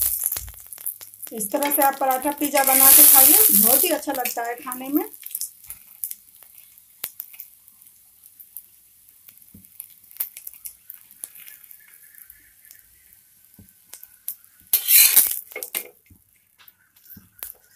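A metal spatula scrapes and taps against a hot pan.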